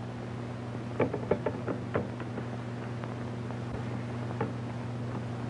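Objects clatter softly as a man handles things on a desk.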